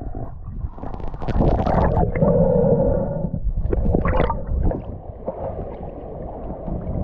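Water splashes and churns at the surface.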